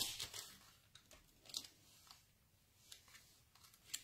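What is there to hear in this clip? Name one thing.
Card stock slides and taps on a wooden table.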